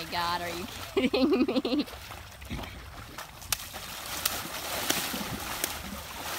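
A horse splashes and paws at shallow water.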